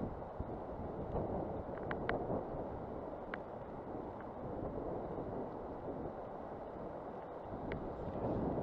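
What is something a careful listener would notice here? Wind blows outdoors.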